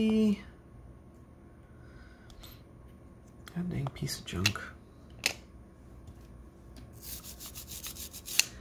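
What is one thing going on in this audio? Plastic parts click and rattle as they are handled close by.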